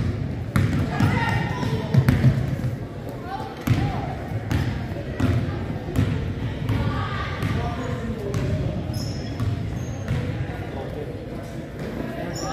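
Players and spectators call out and talk in the echoing gym.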